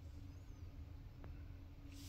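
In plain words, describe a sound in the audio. A button clicks softly as a finger presses it.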